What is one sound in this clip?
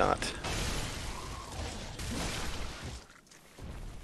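A huge beast growls and snarls.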